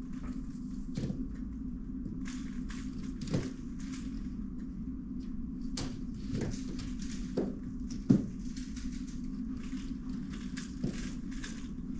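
Plastic cubes knock down onto a table now and then.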